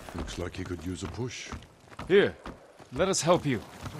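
A horse's hooves clop on a wooden bridge.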